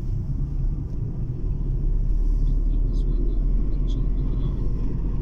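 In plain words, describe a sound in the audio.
A car drives steadily along a road, heard from inside with a low rumble.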